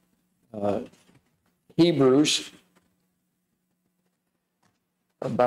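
An elderly man speaks slowly into a microphone, with pauses.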